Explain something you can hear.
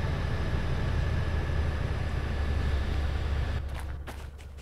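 A diesel locomotive engine rumbles steadily nearby.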